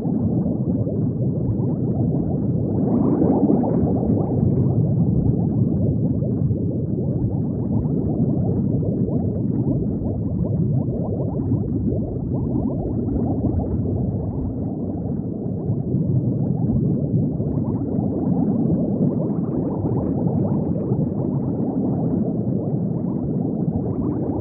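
Bubbles gurgle and burble steadily underwater.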